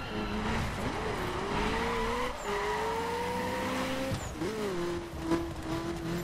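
Tyres screech as a car slides sideways.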